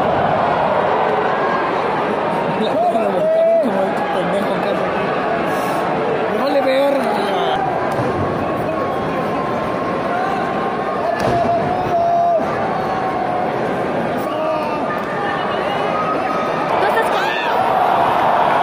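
A large crowd cheers and roars steadily in a big echoing arena.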